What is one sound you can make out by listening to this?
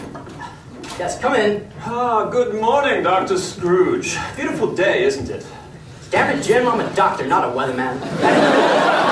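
A man speaks with expression in a large echoing hall.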